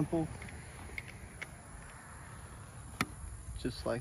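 A bow clicks and knocks as it is handled.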